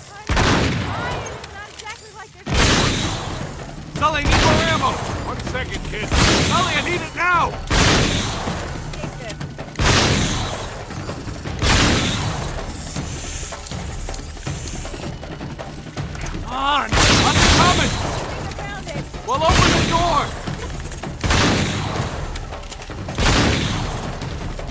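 A gun fires loud single shots again and again, each with a short echo.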